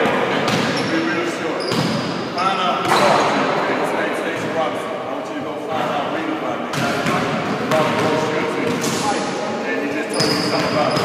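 A man speaks with animation nearby in a large echoing hall.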